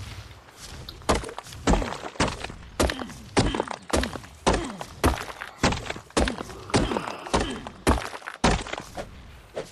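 A stone hatchet strikes rock again and again with sharp knocks.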